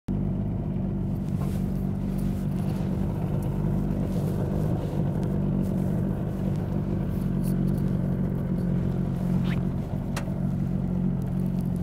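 Small waves lap against the hull of a metal boat.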